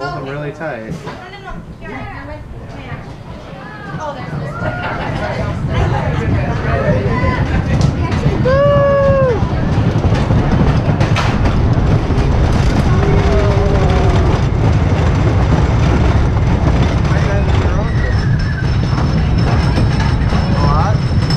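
A roller coaster train rattles and rumbles along wooden track, growing louder as it speeds up.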